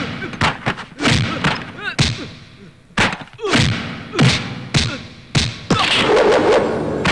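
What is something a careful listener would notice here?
A man grunts and cries out while fighting.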